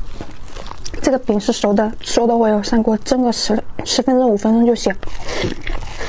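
A young woman talks calmly close to a microphone.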